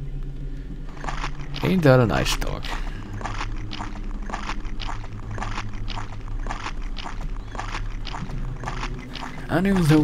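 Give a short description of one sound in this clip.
Footsteps tread steadily over soft ground.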